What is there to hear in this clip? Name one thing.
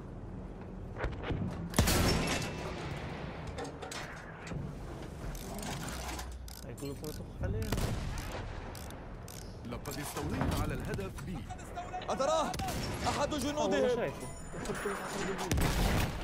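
A heavy gun fires with sharp blasts.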